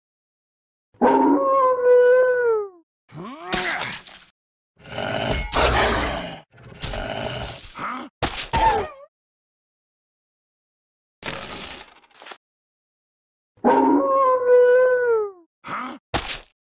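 A wolf howls.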